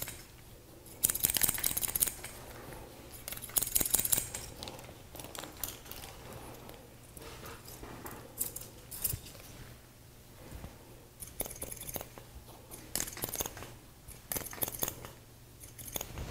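Scissors snip quickly through hair close by.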